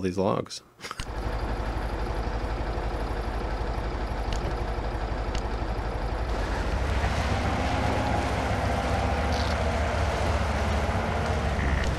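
A heavy truck engine rumbles steadily and grows louder.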